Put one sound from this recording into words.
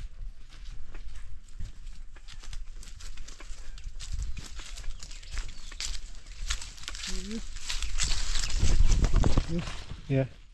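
Footsteps crunch on dry leaves and twigs outdoors.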